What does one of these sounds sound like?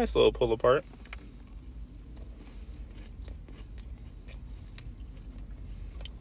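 A young man chews food with his mouth close to the microphone.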